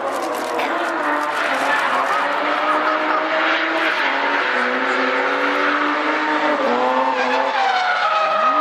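Tyres squeal loudly on asphalt.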